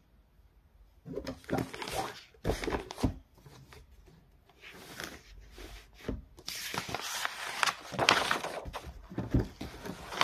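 Paper pages rustle and flip as a notebook is handled.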